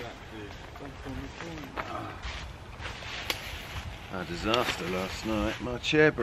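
A quilted jacket rustles as a man moves in it.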